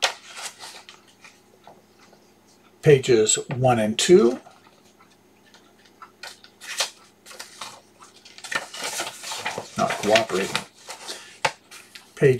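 Paper sheets rustle and crinkle.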